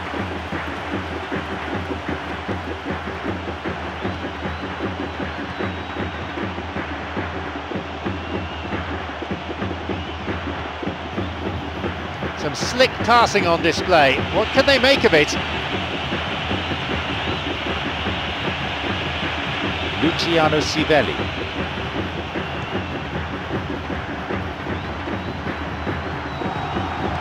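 A large crowd murmurs and chants steadily in a big open stadium.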